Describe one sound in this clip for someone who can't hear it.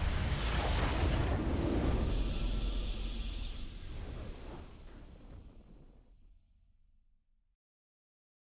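A triumphant game victory fanfare swells and then fades away to silence.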